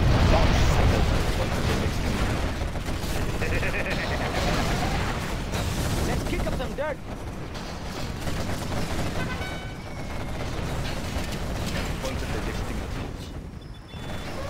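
Explosions and gunfire boom and crack in a battle.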